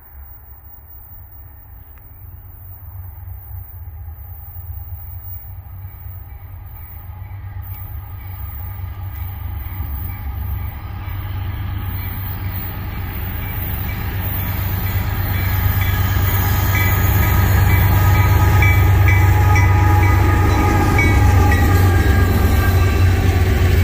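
A freight train's diesel engines rumble closer and grow louder.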